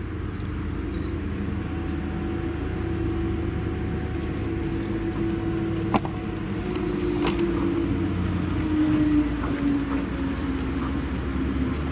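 A tractor engine rumbles steadily nearby.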